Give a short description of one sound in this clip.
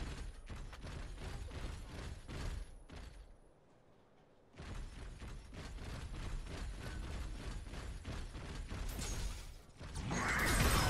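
Heavy metal footsteps stomp along steadily.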